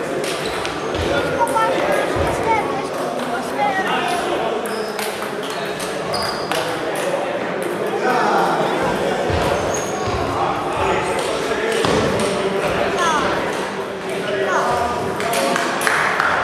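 Table tennis balls click on tables and paddles.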